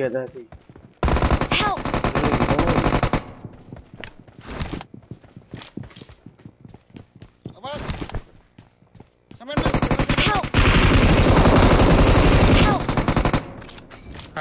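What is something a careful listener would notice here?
Rapid gunfire rattles in bursts from a video game.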